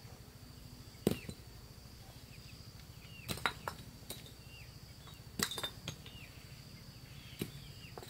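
Bricks clack as they are set down.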